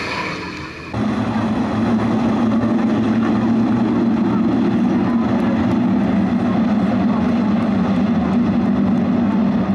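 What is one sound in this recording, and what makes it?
A pack of race car engines drones loudly and steadily.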